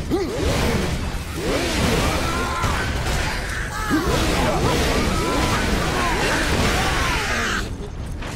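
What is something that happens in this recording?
A motorised blade buzzes and grinds.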